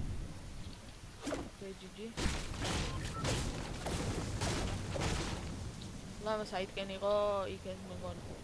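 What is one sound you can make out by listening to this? A pickaxe swings through the air with quick whooshes.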